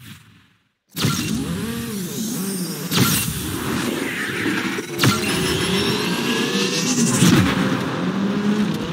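Race car engines roar and rev loudly.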